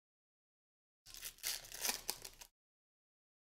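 A plastic card wrapper crinkles and tears as it is opened.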